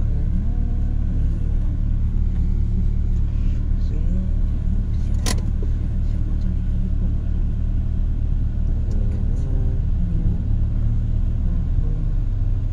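A car engine idles with a low steady rumble, heard from inside the car.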